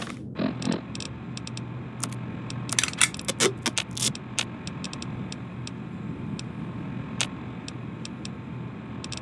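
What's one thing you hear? Short electronic clicks tick rapidly as a menu is scrolled.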